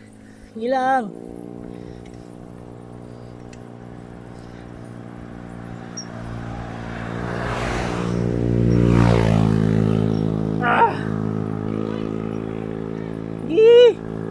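Bicycle tyres hum on asphalt.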